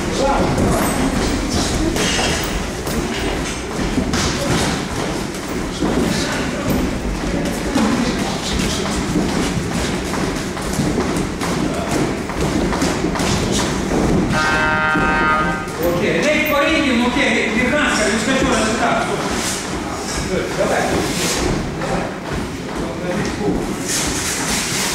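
Boxing gloves thud against pads and bodies.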